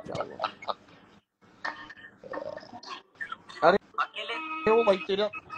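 A second man speaks and laughs over an online call.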